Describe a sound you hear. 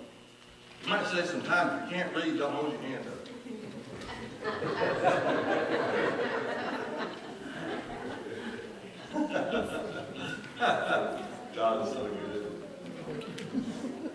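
A woman speaks through a microphone in a large echoing hall.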